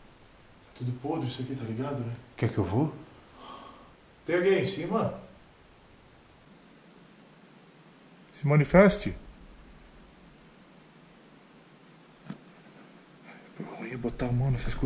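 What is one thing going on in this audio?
A young man talks in a low voice nearby.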